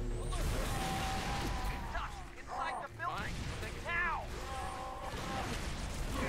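A gun fires in bursts with crackling electric blasts.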